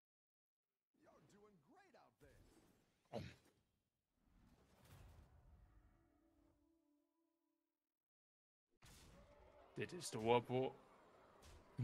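Game sound effects whoosh and chime as the game's pieces attack.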